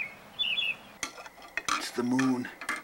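A spoon clinks against a cup.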